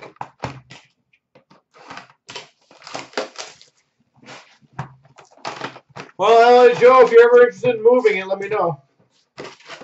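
A cardboard box rustles and knocks as it is handled and opened.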